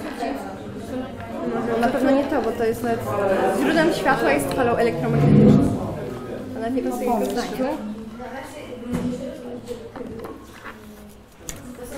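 Children talk over one another in a busy room.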